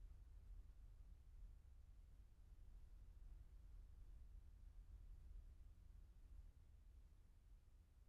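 A car engine hums as the car drives slowly past and away.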